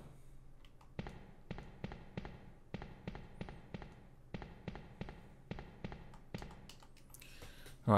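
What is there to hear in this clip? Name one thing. Footsteps tap quickly on a hard tiled floor.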